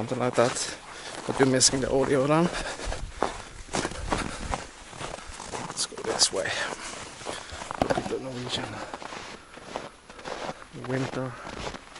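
A middle-aged man talks calmly, close up.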